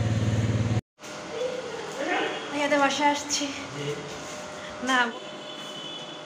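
A young woman speaks and laughs close by with animation.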